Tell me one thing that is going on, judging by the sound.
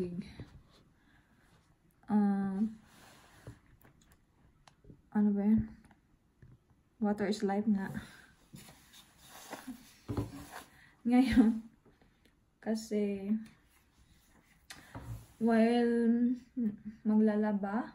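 A young woman talks close up, in a lively way, with pauses between phrases.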